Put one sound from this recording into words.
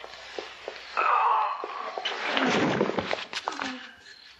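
A man groans and struggles.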